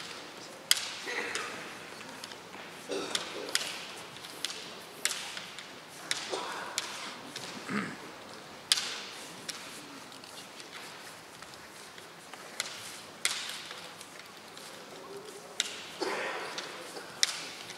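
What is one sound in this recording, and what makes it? Young men shout fierce battle cries in a large echoing hall.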